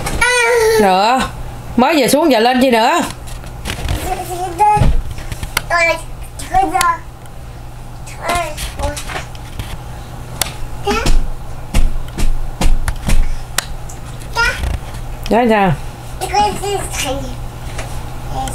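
A toddler babbles and squeals in a high voice close by.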